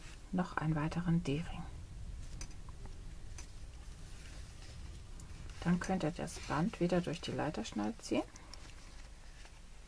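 A small metal buckle clinks softly.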